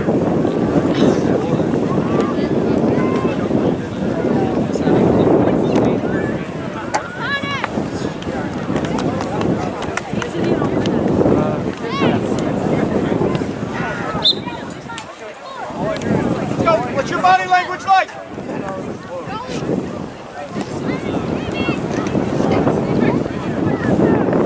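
Wind blusters outdoors across an open field.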